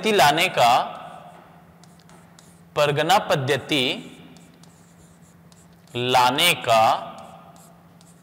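A man speaks loudly in short bursts, with pauses between them, heard close through a microphone.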